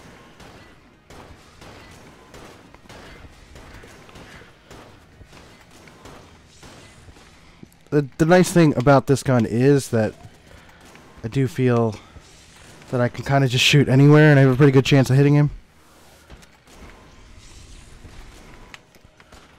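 Guns fire rapid shots with electronic zaps.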